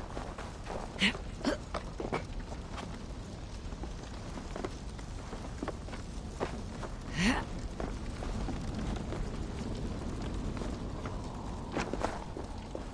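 Hands and boots knock against wooden boards.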